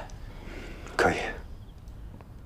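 A young man answers briefly, close by.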